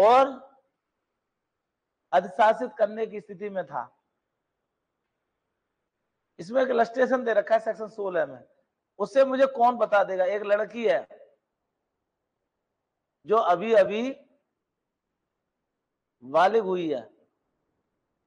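A man lectures through a microphone in short bursts with pauses between them.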